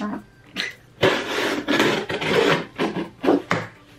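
A box cutter slices through cardboard.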